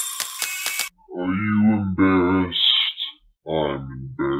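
A young man speaks close by, with animation.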